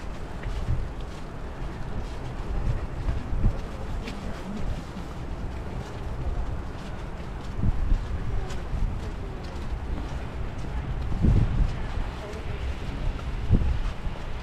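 Footsteps crunch and squeak on fresh snow.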